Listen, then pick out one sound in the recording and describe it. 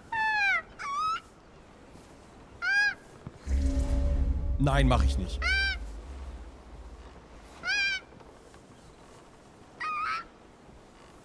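Seagulls cry in short calls.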